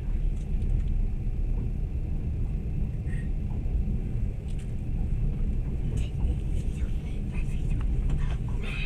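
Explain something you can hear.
A train rumbles steadily along the track, heard from inside a carriage.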